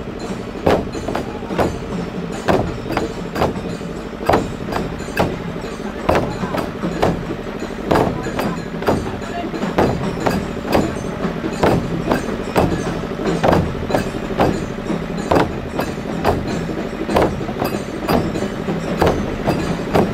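Large drums boom in a loud, steady, pounding rhythm outdoors.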